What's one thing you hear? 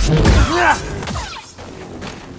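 A lightsaber clashes with a loud buzzing strike.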